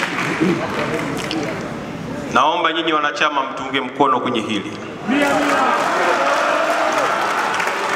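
A man speaks formally into a microphone over loudspeakers in a large echoing hall.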